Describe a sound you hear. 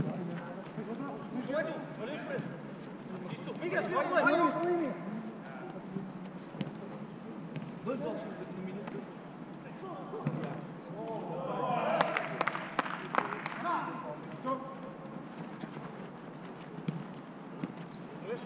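A football thuds off a foot.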